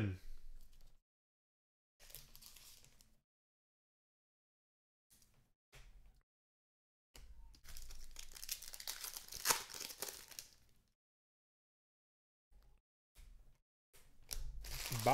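Plastic card wrappers crinkle and rustle as hands open packs.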